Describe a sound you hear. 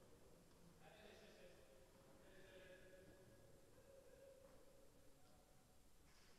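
A tennis ball is struck by a racket in a large echoing hall.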